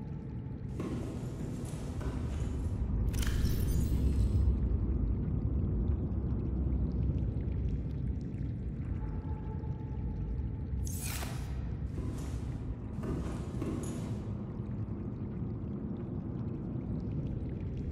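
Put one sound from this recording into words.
A low hum drones steadily throughout.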